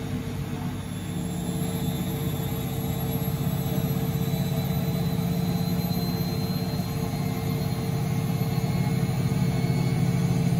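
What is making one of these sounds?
A washing machine's spin speeds up with a rising whine and a louder rumble.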